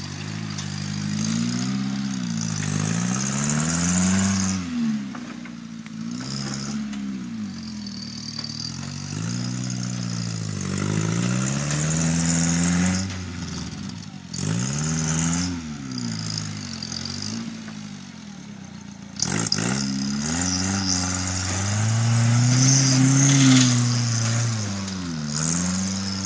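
An off-road buggy's engine revs up and down hard, close by.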